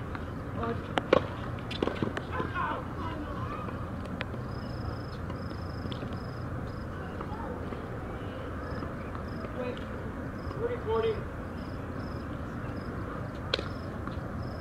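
A tennis ball is struck with a racket outdoors.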